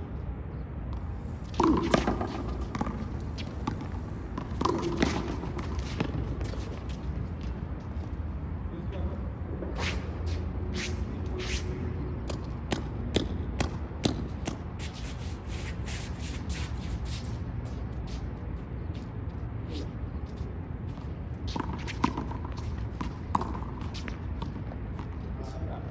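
Sneakers scuff on concrete.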